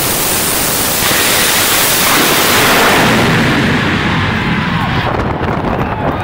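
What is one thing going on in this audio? A jet dragster blasts off with a thunderous roar that fades into the distance.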